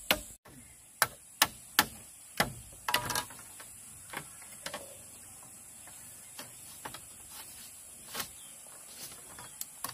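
Bamboo strips clatter as they are fitted into a frame.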